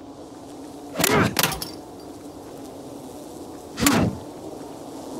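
A wooden bat whooshes through the air.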